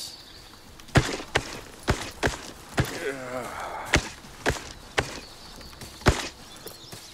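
An axe chops wood with sharp knocks.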